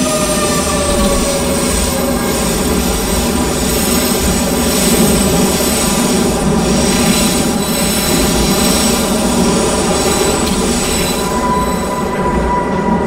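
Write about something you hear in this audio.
A train's motors whine steadily.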